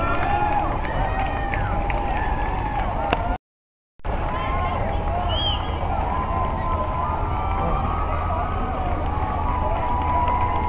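Many runners' footsteps patter on pavement outdoors.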